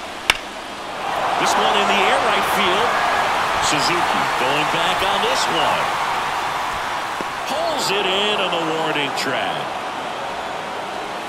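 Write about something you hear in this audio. A crowd cheers loudly and slowly settles.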